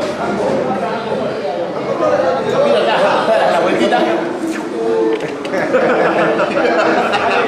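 Many men chat at once in a busy room.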